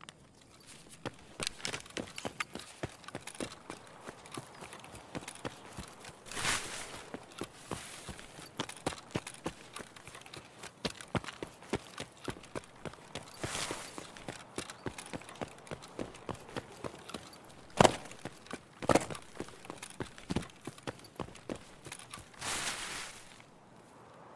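Footsteps crunch steadily over rough ground.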